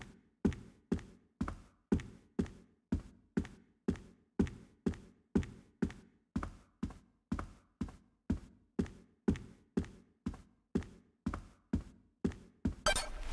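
Footsteps tap steadily across a hard floor.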